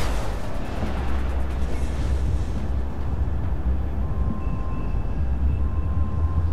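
Wind rushes past loudly in a steady low roar.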